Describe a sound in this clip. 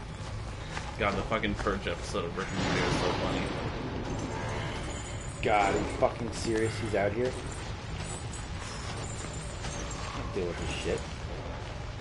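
A young man speaks excitedly into a microphone.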